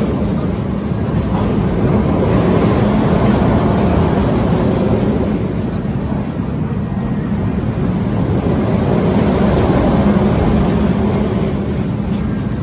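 A fairground ride's cars rumble around a steel track, swelling louder and then easing.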